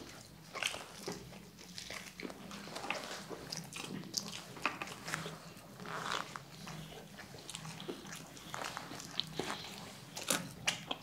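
Two young men chew and crunch crispy food loudly, close to a microphone.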